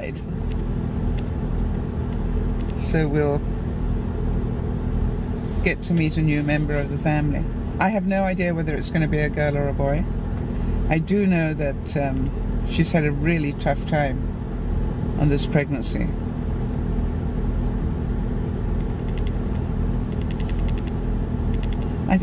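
A car engine hums steadily with low road rumble.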